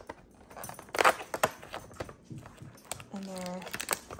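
Cardboard tears and crinkles as a small flap is pulled open.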